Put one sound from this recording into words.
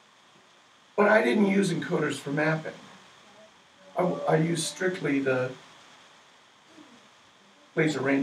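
A middle-aged man speaks calmly at a distance in a room.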